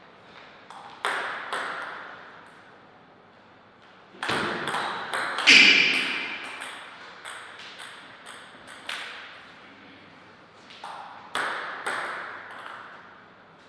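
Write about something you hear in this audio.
A ping-pong ball clicks sharply back and forth off paddles and a table in an echoing hall.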